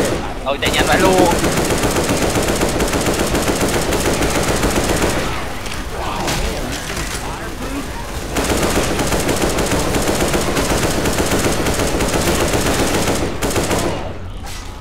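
A machine gun fires rapid bursts of loud gunshots.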